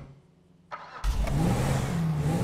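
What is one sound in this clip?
A car engine starts and rumbles loudly.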